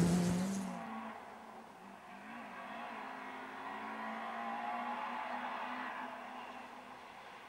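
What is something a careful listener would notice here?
A rally car engine roars as the car speeds along a gravel road.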